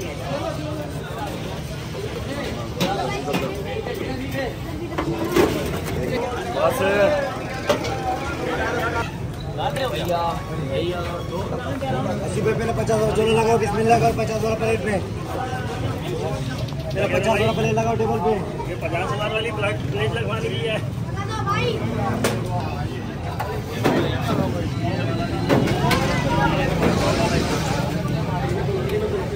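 Men talk and chatter nearby in a busy crowd.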